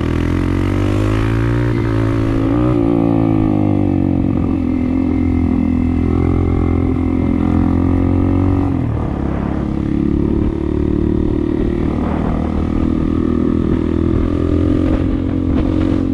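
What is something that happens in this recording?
A motorbike engine hums close by, rising and falling in pitch as it speeds up and slows down.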